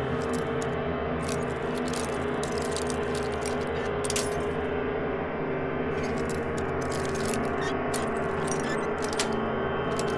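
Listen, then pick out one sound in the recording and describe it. A metal pick scrapes and clicks inside a lock.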